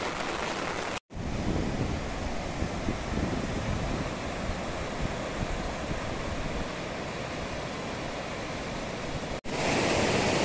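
A river rushes in the distance.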